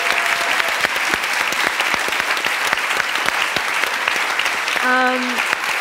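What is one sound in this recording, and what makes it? Hands clap in steady applause.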